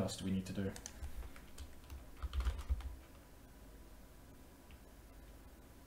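Keys clatter as a man types on a keyboard.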